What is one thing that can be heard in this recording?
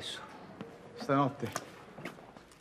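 A man asks a short question calmly.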